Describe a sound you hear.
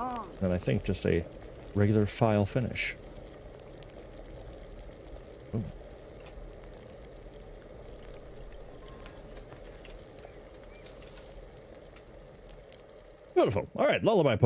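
A fire crackles and hisses steadily.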